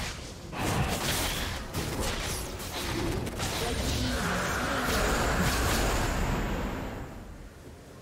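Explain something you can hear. Magic spell effects crackle and boom in a fierce fight.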